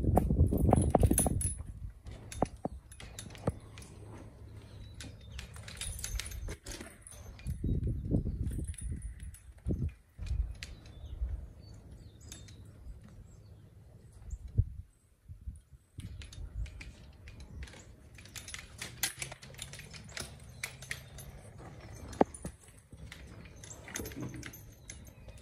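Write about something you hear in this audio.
Metal harness buckles and chains clink.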